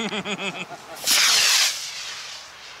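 A model rocket motor ignites with a loud rushing hiss.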